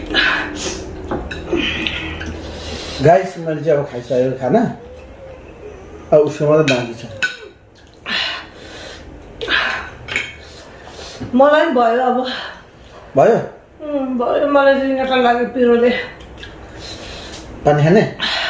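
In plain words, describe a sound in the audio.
A man chews and slurps food loudly close by.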